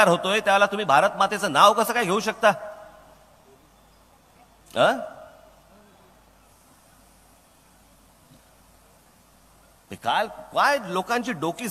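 A man speaks forcefully into a microphone, with long pauses between phrases.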